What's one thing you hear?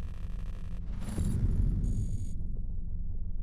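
A short electronic interface chime rings out.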